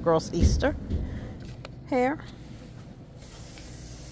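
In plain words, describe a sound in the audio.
Fabric hair ties rustle softly as a hand brushes through them.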